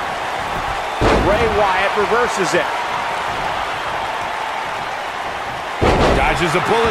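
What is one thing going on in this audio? A body slams down hard onto a wrestling ring mat.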